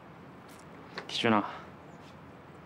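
A young man speaks briefly and quietly.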